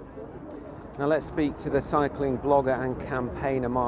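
A man speaks clearly into a microphone outdoors.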